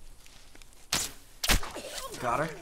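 A rifle fires two loud shots.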